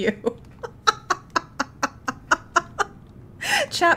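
A young woman laughs in quick bursts close to a microphone.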